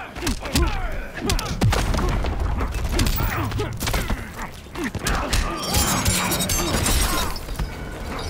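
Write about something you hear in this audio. Fighters grunt and shout with effort.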